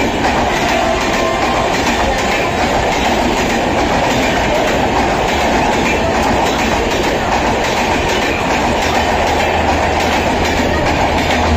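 A passenger train rolls past close by, its wheels rumbling and clattering on the rails.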